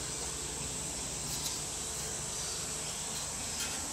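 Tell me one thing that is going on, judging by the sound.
A marker squeaks as it draws a line on wood.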